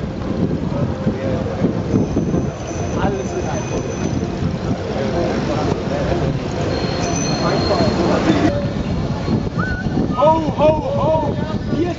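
Bicycles roll along a street with a steady rumble.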